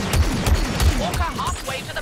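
A blaster rifle fires a shot.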